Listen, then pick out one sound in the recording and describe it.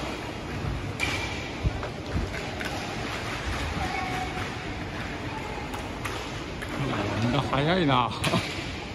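Hockey sticks clack against a ball on a hard floor in an echoing hall.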